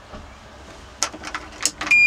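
A key rattles and clicks in an ignition.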